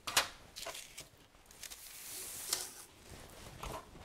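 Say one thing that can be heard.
Crumbs are brushed across a hard surface with a soft rustle.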